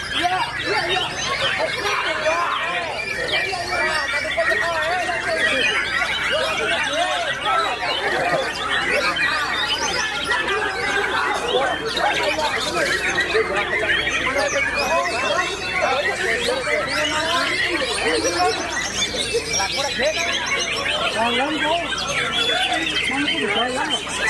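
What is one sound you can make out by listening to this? Many songbirds chirp and warble loudly and without pause.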